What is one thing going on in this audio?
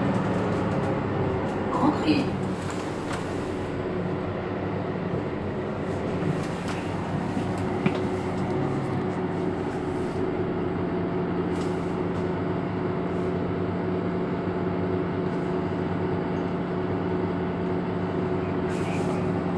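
A bus engine idles nearby with a steady low hum.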